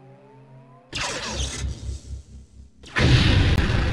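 An energy blast bursts with a sharp roar.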